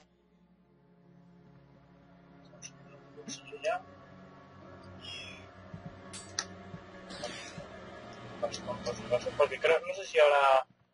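Slow, steady game music plays.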